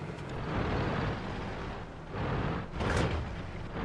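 A tank engine rumbles.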